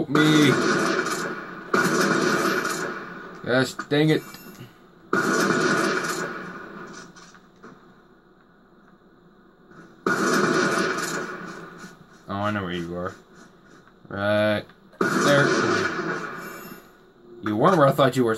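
Sniper rifle shots from a video game boom loudly through television speakers, each trailing off in a long echo.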